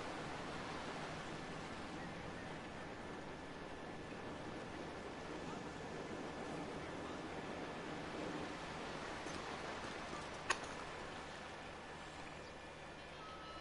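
Waves wash steadily onto a shore.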